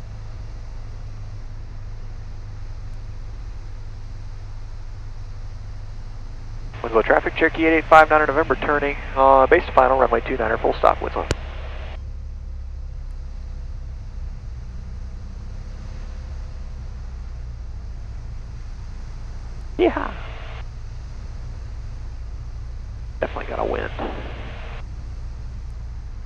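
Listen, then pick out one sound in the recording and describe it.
A small plane's engine drones steadily throughout.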